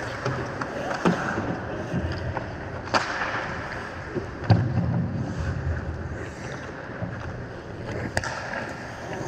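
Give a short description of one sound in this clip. Hockey sticks clack against a puck, echoing in a large hall.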